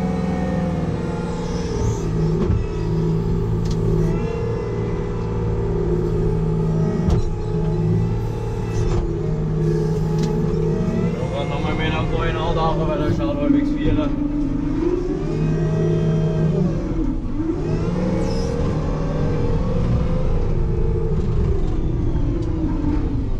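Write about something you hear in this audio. A heavy machine's engine rumbles steadily from inside its cab.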